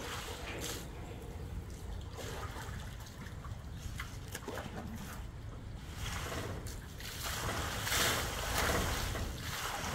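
A large animal laps water noisily.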